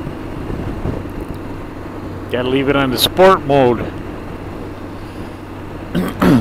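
Wind rushes past a moving motorcycle.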